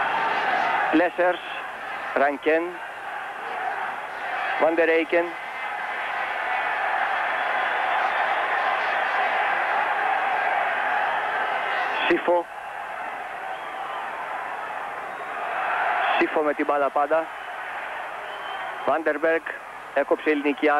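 A large stadium crowd roars and cheers steadily, swelling and falling.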